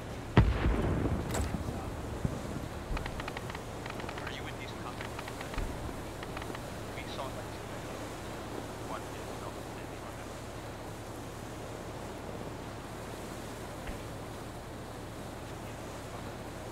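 A man talks quietly into a microphone.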